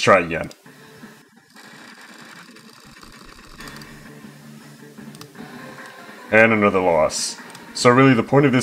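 A computer game plays a soft tune through a small speaker.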